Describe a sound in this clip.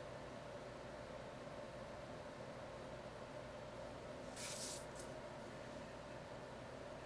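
A marker pen squeaks and scratches on paper.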